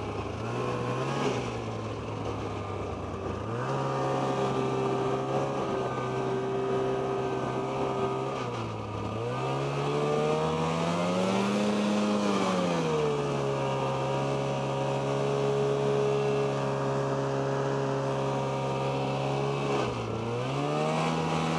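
A snowmobile engine drones up close, revving up and down as it speeds along.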